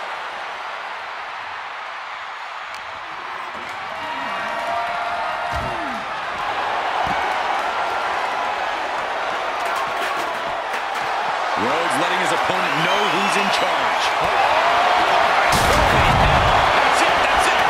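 A crowd roars and cheers loudly, growing louder.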